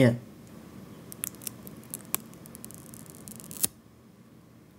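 A thin plastic film crackles faintly as it peels away.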